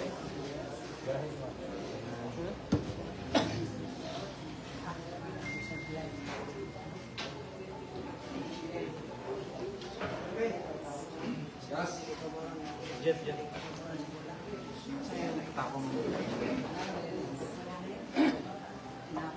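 A crowd of people chatters steadily in the background.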